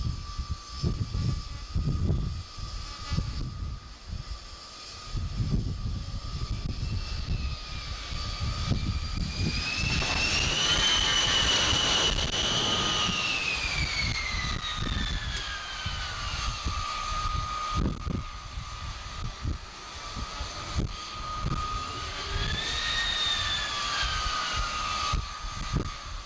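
Wind buffets the microphone in heavy gusts.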